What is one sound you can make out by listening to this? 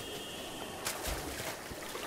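Water splashes as someone wades in.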